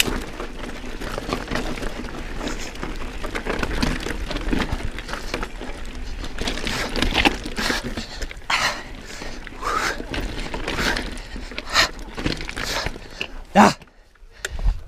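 Bike tyres rattle and crunch over loose rocks.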